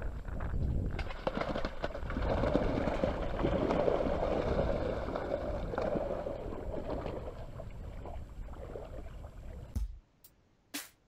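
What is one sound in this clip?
Footsteps slosh through shallow water.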